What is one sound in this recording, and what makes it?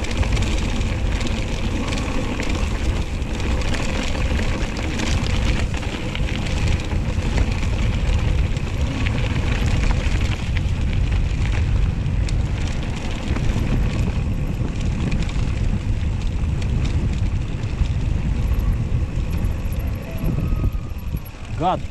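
Bicycle tyres crunch and rattle over a rough dirt track.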